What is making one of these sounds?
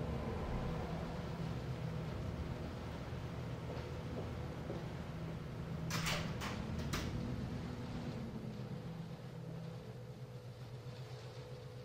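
Footsteps cross a room.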